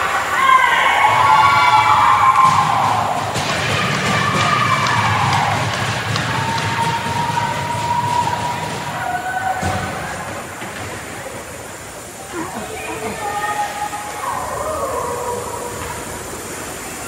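Young players shout and call out across a large echoing rink.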